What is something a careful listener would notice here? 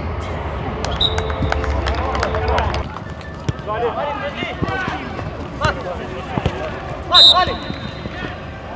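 A whistle blows shortly.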